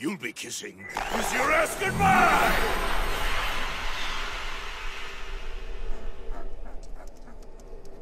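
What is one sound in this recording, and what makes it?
A magical blast roars and whooshes, then slowly fades.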